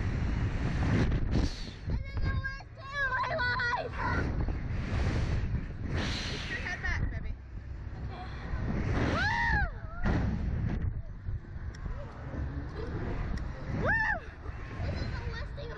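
Wind rushes and buffets loudly past the microphone.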